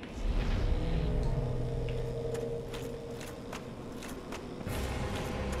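A magical spell hums and crackles.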